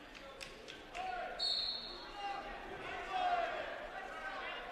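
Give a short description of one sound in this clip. Wrestling shoes squeak on a mat.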